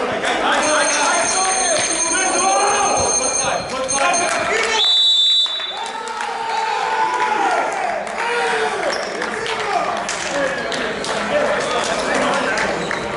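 Men call out and talk to each other in a large echoing hall.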